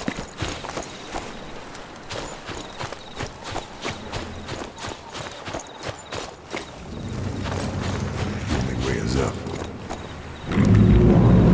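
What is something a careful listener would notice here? Footsteps crunch quickly on sand and stone.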